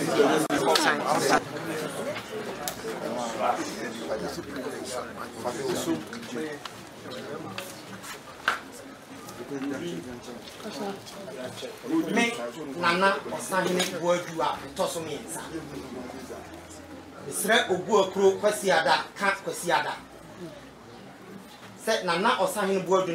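People murmur quietly in the background.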